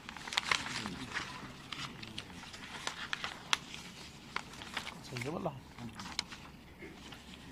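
Paper rustles and crinkles close by.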